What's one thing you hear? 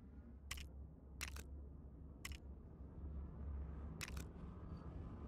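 Short electronic clicks sound as menu options are picked.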